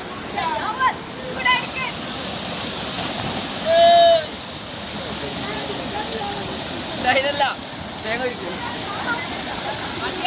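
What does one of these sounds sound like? Young men shout and call out nearby.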